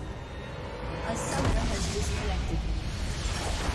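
Magic blasts whoosh and crackle in a battle.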